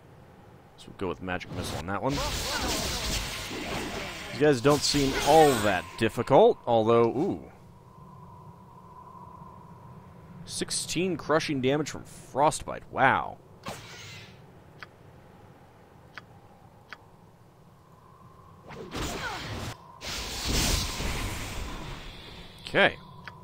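Magic spells burst and crackle in bursts.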